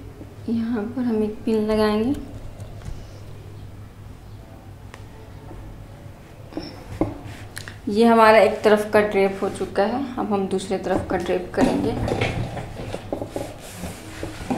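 A young woman speaks calmly and clearly, close by, as if explaining.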